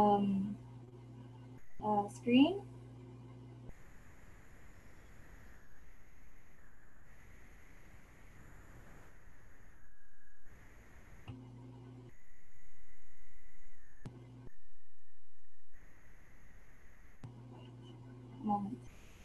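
A young woman speaks over an online call.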